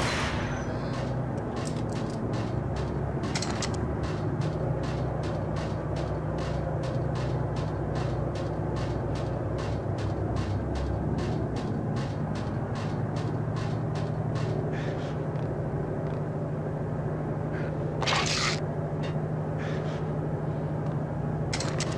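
A low machine hum drones steadily in the background.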